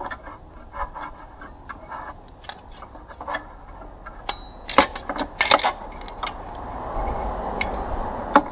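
Metal parts clink and knock as hands work on an engine.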